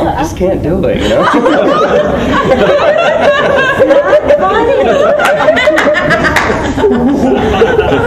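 A middle-aged man laughs heartily nearby.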